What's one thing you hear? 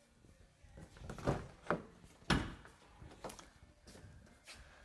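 Knocks and thumps sound from handling a door.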